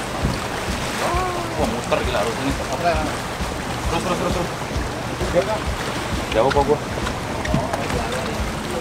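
Men talk with animation nearby.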